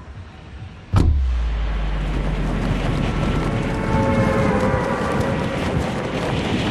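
Wind rushes loudly past a falling video game character.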